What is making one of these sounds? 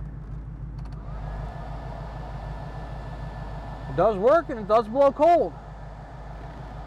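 A dashboard fan starts and blows air with a steady whir.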